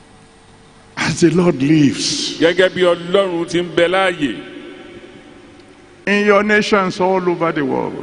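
A man speaks with animation into a microphone, heard through loudspeakers in a large echoing hall.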